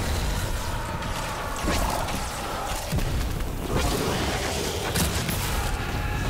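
Energy beams fire with a loud crackling hum.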